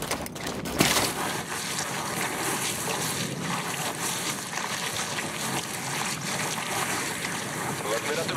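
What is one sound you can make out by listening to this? Feet slide quickly down a muddy grass slope.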